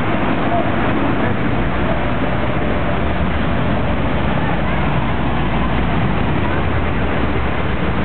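A car engine rumbles as a car drives past close by.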